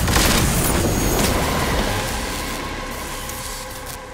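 Electricity crackles and buzzes.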